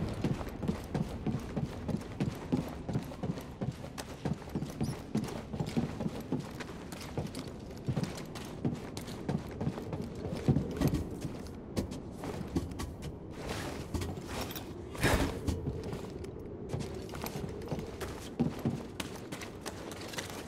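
Footsteps thud quickly across a metal floor.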